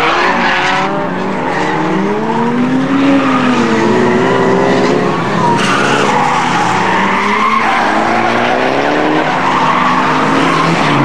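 Car engines rev hard and roar as cars race past.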